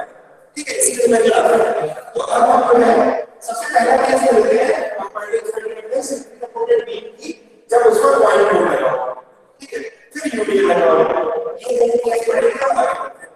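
A man speaks steadily and clearly, explaining in a lecturing tone.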